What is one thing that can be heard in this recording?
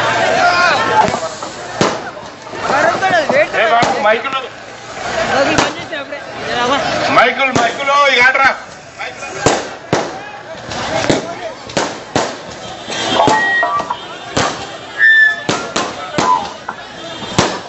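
Fireworks crackle and pop sharply.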